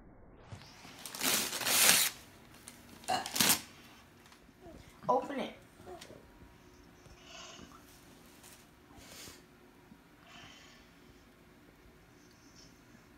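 Wrapping paper rustles and crinkles as a child tears into a gift.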